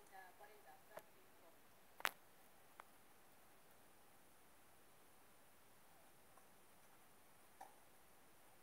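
A tennis ball is hit with a racket, with sharp pops now and then.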